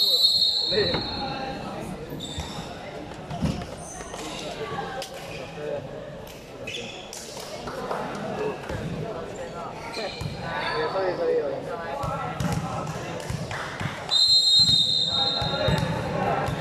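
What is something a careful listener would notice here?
A crowd of young people chatters and calls out in a large echoing hall.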